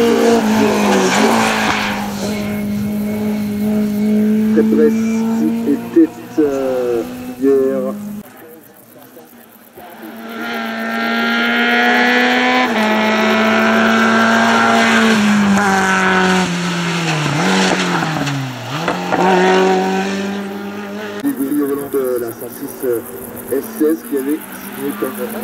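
A rally car engine roars and revs hard as cars race past one after another.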